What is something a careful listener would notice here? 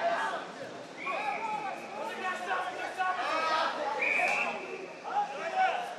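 A referee's whistle blows in two short sharp blasts.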